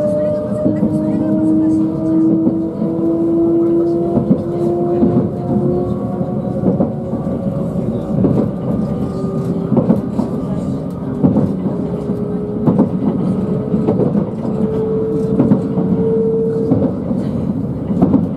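Train wheels click and knock over rail joints.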